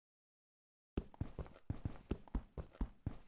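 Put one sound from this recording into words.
A pickaxe strikes stone in quick repeated knocks.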